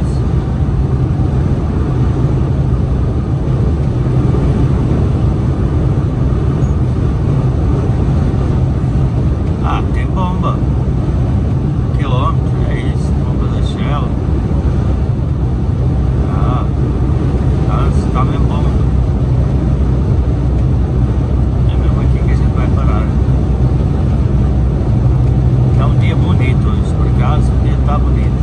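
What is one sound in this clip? Tyres roar steadily on the motorway surface.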